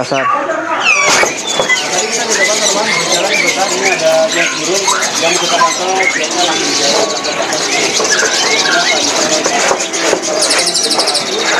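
Many caged birds chirp and twitter all around.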